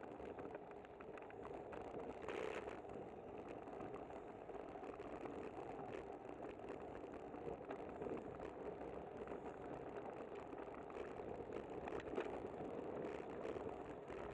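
Tyres hum on the road surface.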